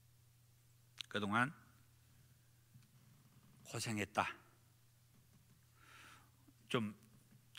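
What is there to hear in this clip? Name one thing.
A man speaks slowly and calmly into a microphone, in short phrases with pauses.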